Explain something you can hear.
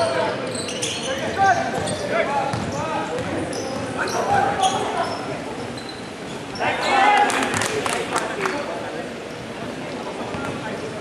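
Young men shout to each other across an echoing gym.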